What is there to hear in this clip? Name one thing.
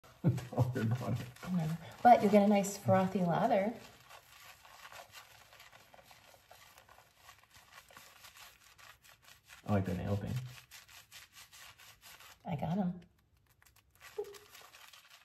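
Soapy lather squelches as hands rub wet fur.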